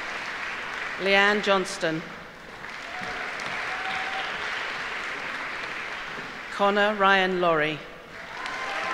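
A woman reads out names through a microphone in a large hall.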